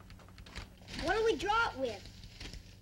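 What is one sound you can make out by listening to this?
A young boy speaks excitedly.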